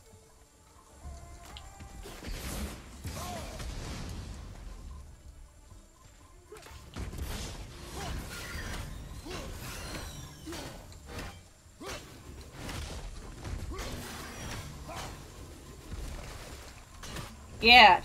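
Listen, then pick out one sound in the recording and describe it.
Heavy blows and crashes ring out in a fight.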